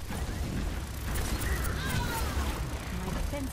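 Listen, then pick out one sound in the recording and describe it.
An energy gun fires a burst of shots.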